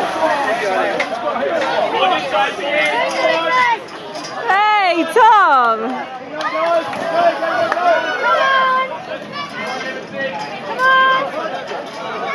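People splash into water.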